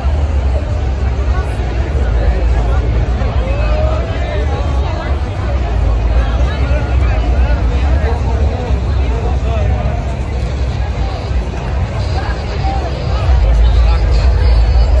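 A large crowd chatters and calls out all around, outdoors.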